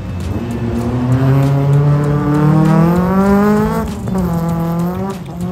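A car engine revs hard, rising and falling, close by.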